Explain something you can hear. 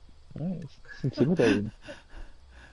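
A man speaks casually into a headset microphone.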